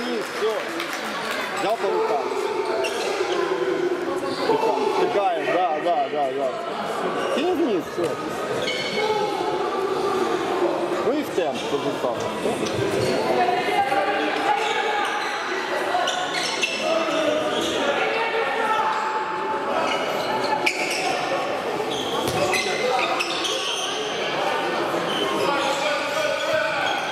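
Young men shout to each other across an echoing sports hall.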